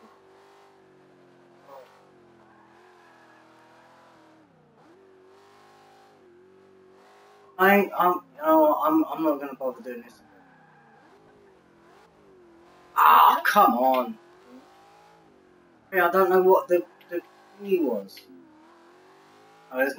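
A car engine hums steadily and shifts in pitch as the car races.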